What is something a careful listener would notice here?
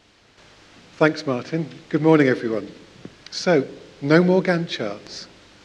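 A man speaks calmly into a microphone, in short phrases.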